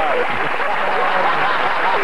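An elderly man laughs loudly.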